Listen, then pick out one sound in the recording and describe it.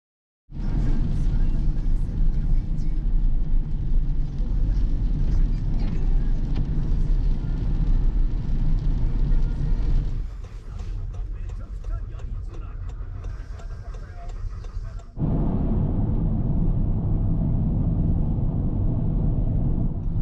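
A car's engine hums steadily from inside the car.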